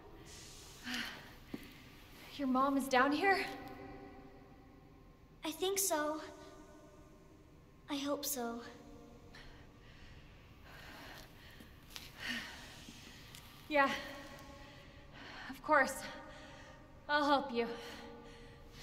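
A young woman speaks in short, breathy bursts.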